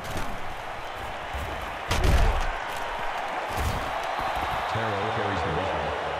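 Football players crash together with heavy thuds.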